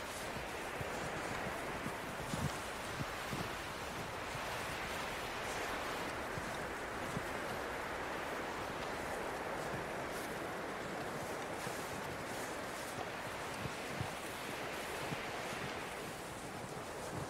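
A snowstorm wind blows steadily outdoors.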